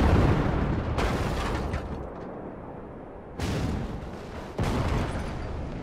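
An energy weapon fires with sharp, sizzling blasts.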